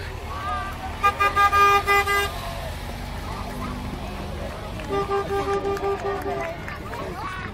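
A horn toots in repeated short blasts.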